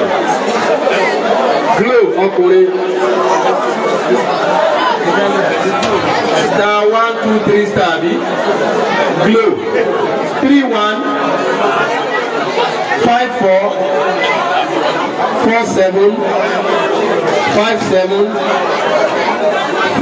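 A man speaks with animation into a microphone, heard through a loudspeaker in an echoing room.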